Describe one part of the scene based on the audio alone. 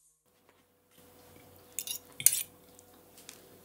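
A knife scrapes and clicks as food is cut by hand.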